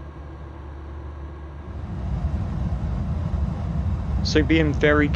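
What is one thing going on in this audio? Jet engines roar steadily, growing louder partway through.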